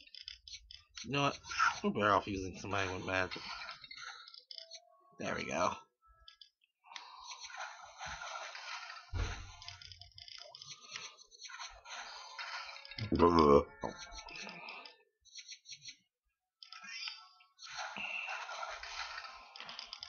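Small coins jingle quickly as they are gathered.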